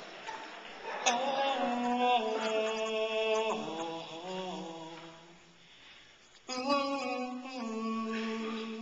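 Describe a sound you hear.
A group of young men sing together in close harmony without instruments, amplified through microphones in a large hall.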